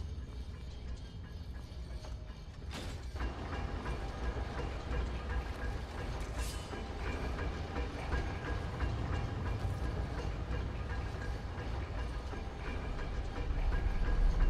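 Heavy armoured footsteps thud on stone.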